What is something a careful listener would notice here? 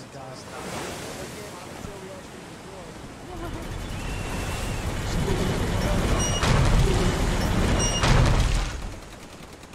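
A boat engine rumbles over lapping water.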